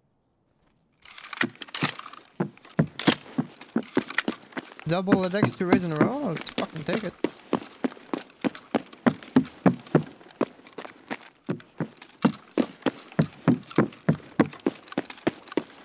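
Footsteps thud steadily on a hard floor indoors.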